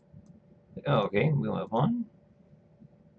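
A middle-aged woman speaks briefly and calmly into a nearby microphone.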